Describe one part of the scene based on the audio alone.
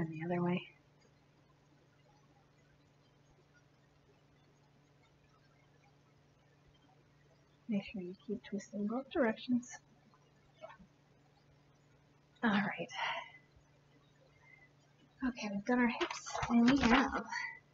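A young woman speaks calmly and warmly, close to a microphone.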